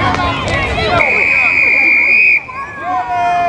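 A referee's whistle blows with a long steady blast.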